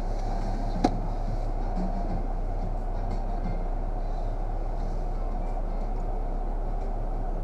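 A car engine idles steadily with a low hum.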